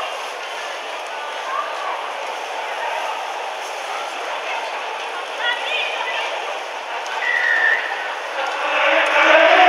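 A crowd murmurs and cheers in a large open stadium.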